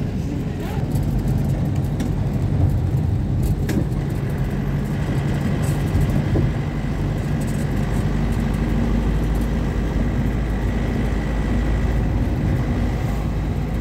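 A vehicle engine hums steadily from inside a moving car.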